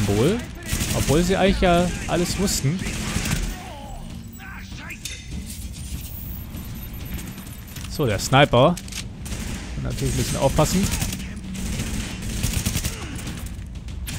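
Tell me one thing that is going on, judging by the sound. Rifles fire bursts of gunshots.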